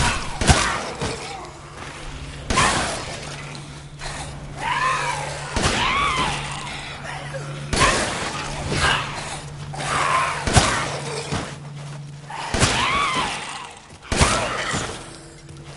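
A shotgun is pumped with a metallic clack after each shot.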